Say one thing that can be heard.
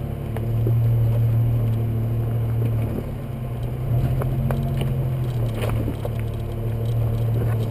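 A vehicle body creaks and knocks as it bounces over rough ground.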